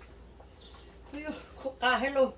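A middle-aged woman speaks close by.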